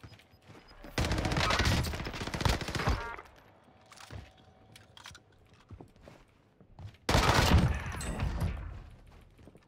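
Gunfire rattles in loud rapid bursts.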